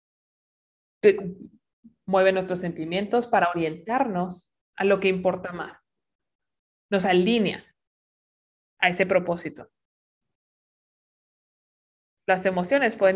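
A woman speaks calmly into a microphone, heard through an online call, in short phrases with pauses.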